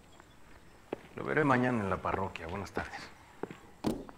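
A second man answers in a low voice.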